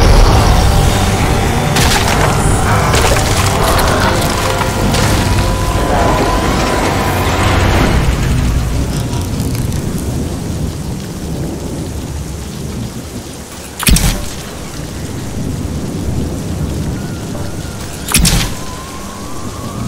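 A heavy machine rumbles low and steadily.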